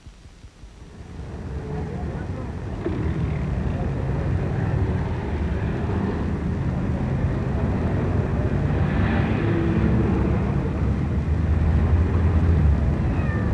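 Traffic rumbles steadily in a street.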